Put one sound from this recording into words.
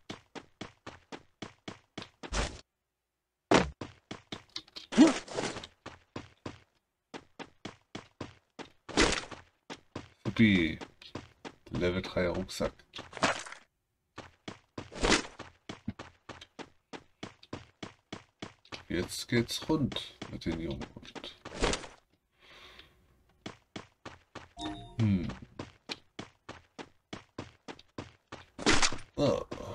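Footsteps tap quickly and evenly.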